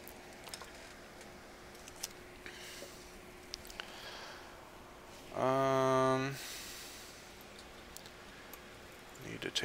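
Small plastic objects click and clack as hands handle them nearby.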